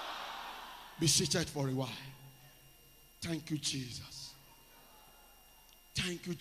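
A man preaches loudly through a microphone, with pauses.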